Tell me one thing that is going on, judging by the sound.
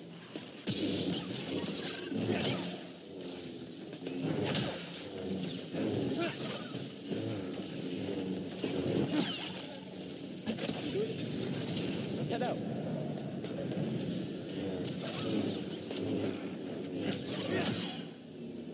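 Sparks crackle and hiss as blades strike.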